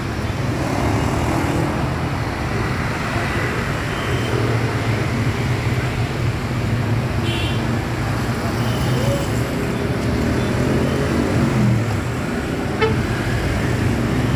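A large bus engine idles with a deep rumble.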